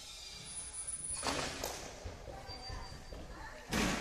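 A child's body shifts and thumps softly on a padded mat.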